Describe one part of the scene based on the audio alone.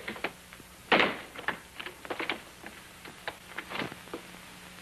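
A door handle rattles and clicks.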